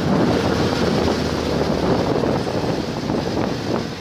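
A motorbike engine hums as it rides past.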